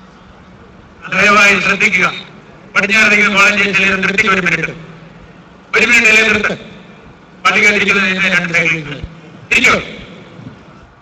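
A man chants loudly in long phrases through a loudspeaker.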